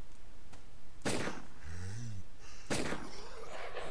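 A pistol fires loud shots that echo.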